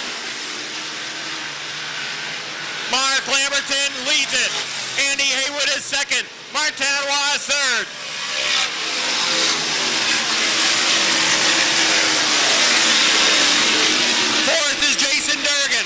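Racing car engines roar loudly as the cars speed past close by.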